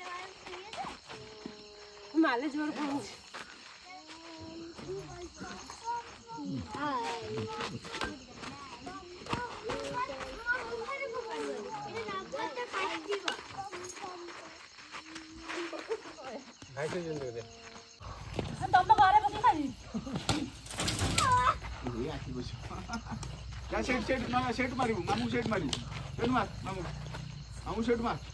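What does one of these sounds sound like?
Several young people talk and call out with animation nearby, outdoors.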